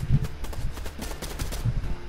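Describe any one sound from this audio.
A pickaxe swings through the air with a whoosh.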